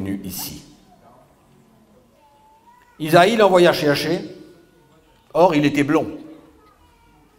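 A man speaks calmly into a microphone in a reverberant hall.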